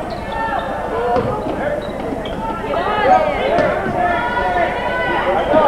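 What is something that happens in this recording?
Men and boys shout and call out across an echoing gym.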